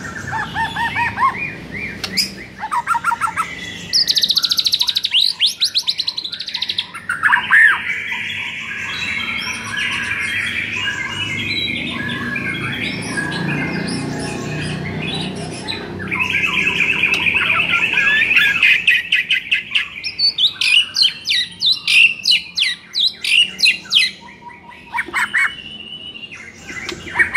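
A caged songbird sings loud, varied phrases of whistles, trills and rapid chirps close by.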